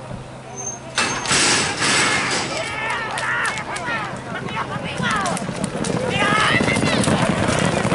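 Horses gallop past, hooves pounding on dirt.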